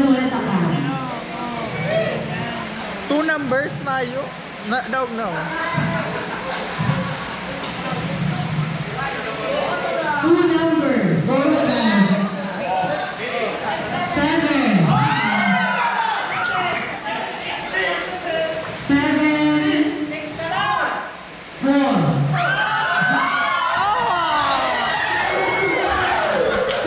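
A crowd of people chatters in the background outdoors.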